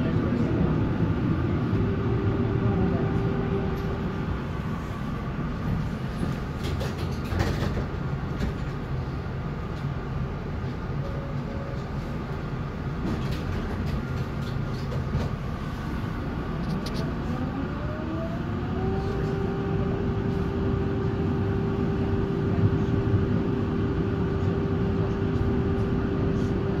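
A tram rumbles along its rails with a steady low hum.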